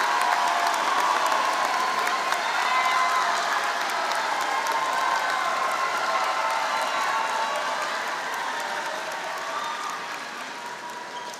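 A crowd cheers loudly in a large echoing hall, slowly fading.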